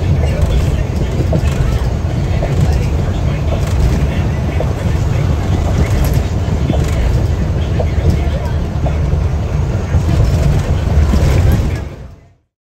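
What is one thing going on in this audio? An engine rumbles steadily from inside a moving vehicle.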